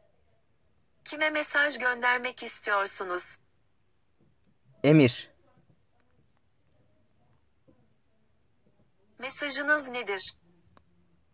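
A synthetic voice speaks through a phone's small loudspeaker.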